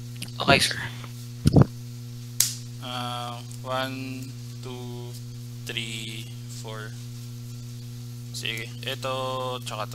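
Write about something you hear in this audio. Playing cards slide and tap on a table mat.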